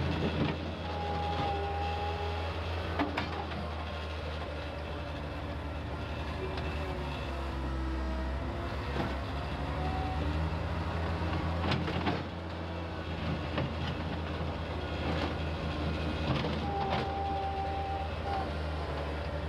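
Hydraulics whine as a loader's bucket lifts and tilts.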